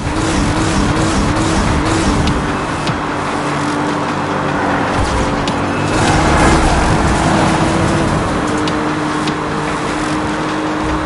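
Tyres rush over asphalt.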